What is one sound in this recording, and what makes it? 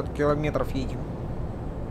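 A young man speaks briefly into a microphone.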